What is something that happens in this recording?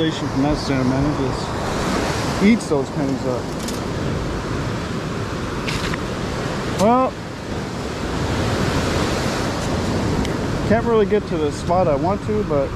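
Small waves wash up onto a sandy shore and foam as they pull back.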